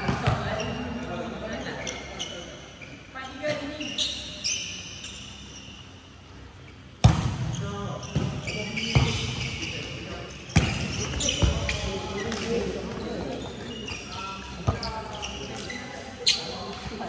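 Sports shoes squeak on a wooden court.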